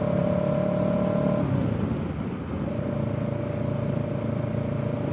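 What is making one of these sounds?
A parallel-twin motorcycle engine hums while cruising, easing off briefly before picking up again.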